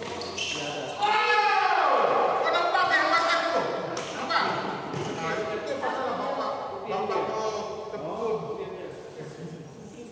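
Young men talk with animation nearby in an echoing hall.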